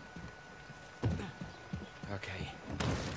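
A wooden gate is shoved open with a thud.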